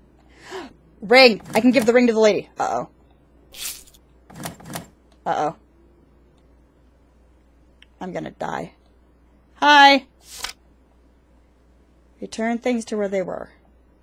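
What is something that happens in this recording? A woman talks into a close microphone, in short bursts.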